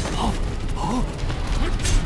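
A large beast growls low and menacingly.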